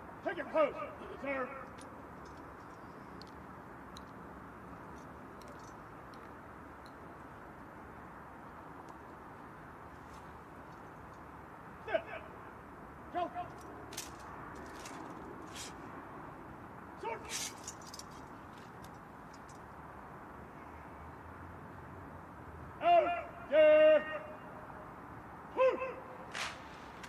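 A man shouts drawn-out commands outdoors, echoing across a wide open space.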